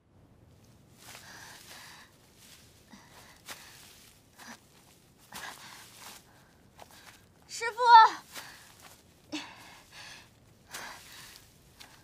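Tall grass rustles and swishes as someone pushes through it.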